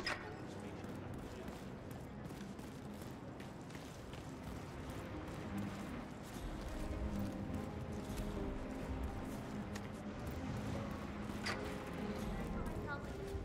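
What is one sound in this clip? Footsteps tread softly across a stone floor.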